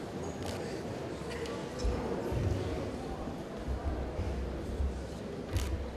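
A man recites prayers slowly in a large echoing hall.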